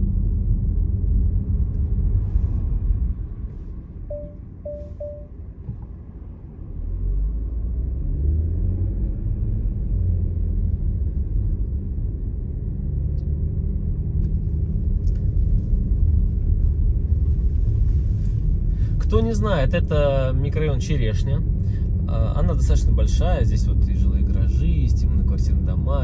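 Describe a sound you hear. A car engine rumbles steadily while driving slowly.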